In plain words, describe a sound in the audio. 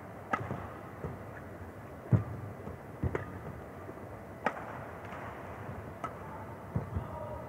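Shoes squeak and thud on a court floor.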